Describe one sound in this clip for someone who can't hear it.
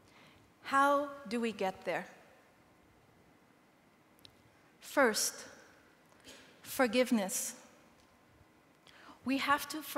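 A woman speaks with emotion through a microphone in a large room, with long pauses.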